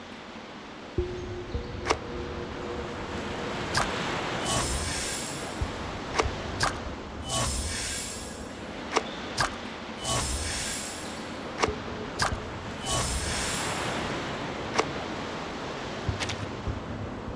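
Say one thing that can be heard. Short game menu chimes and clicks ring out as rewards are collected.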